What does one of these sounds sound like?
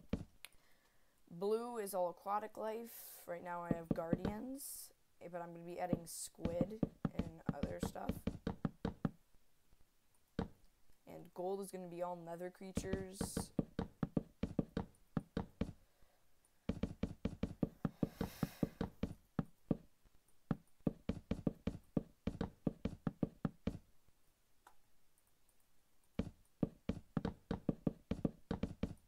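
Wooden blocks are placed with quick, dull knocks in rapid bursts.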